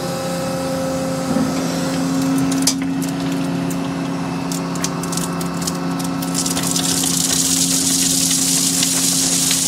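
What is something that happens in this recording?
An excavator engine hums steadily.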